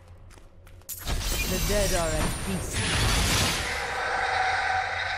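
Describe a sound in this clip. A magical shimmer rings out and hums.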